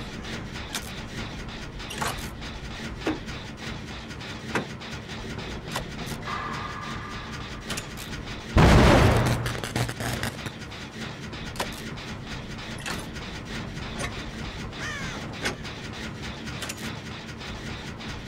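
Metal parts rattle and clink as a machine is repaired.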